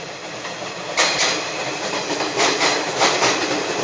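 Train wheels clatter over rail joints in a quick rhythm.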